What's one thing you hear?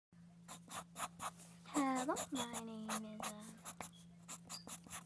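A pencil scratches across paper in short strokes.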